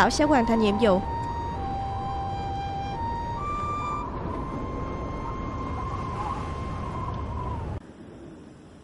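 A harmonica plays a slow melody.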